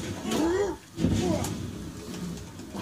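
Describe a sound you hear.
A fire blast roars and crackles.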